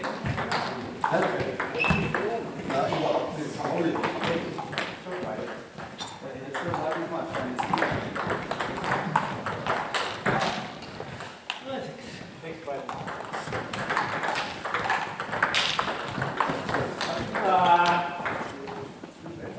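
Men talk casually nearby.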